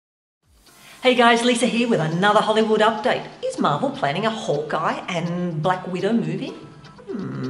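A woman talks with animation, close to the microphone.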